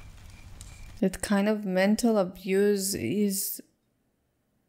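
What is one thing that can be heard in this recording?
A middle-aged woman speaks calmly close to a microphone.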